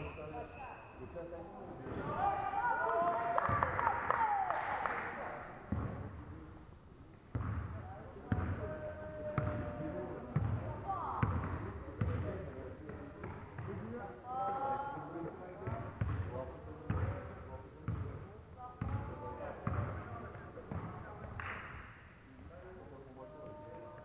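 Players shout and call out across an echoing hall.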